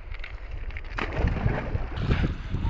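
A turtle splashes into the water.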